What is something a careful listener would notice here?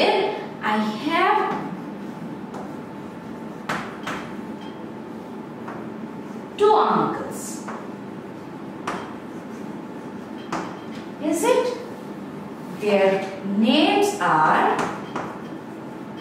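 A young woman speaks calmly and slowly, close by.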